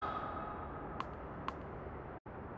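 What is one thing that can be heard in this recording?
A tennis ball bounces twice on a hard court.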